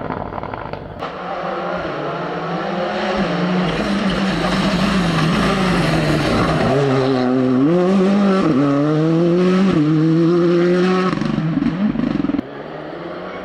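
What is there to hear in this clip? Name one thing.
A second rally car engine roars and revs sharply through a bend.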